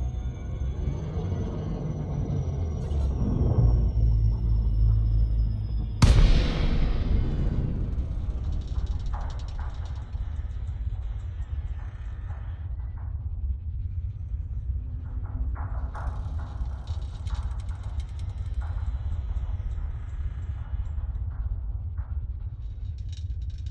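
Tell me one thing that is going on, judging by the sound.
A spaceship's engines rumble low and steadily.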